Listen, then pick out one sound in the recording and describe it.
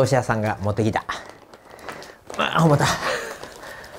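Paper rustles as a man handles a package.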